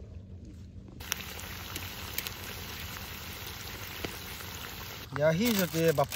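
Food sizzles and bubbles in a hot pan.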